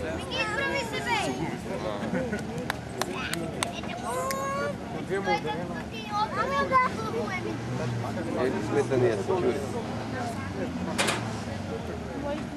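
Men talk nearby outdoors with animation.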